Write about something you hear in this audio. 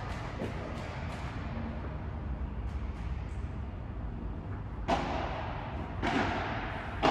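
Rackets strike a ball with sharp pops that echo in a large hall.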